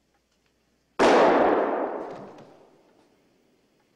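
A door slams shut loudly and rings out.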